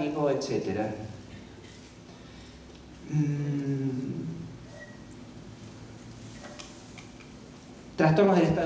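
A man reads aloud calmly into a microphone, in short phrases with pauses.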